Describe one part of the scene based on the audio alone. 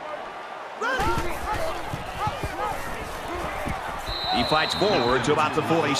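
Football players crash together in a tackle.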